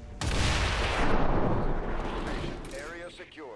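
A huge explosion booms and rumbles, then slowly fades.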